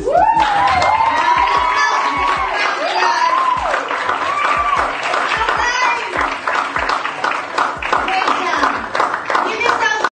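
A crowd cheers and screams loudly nearby.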